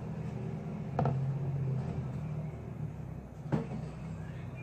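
A bowl knocks against a counter a few times.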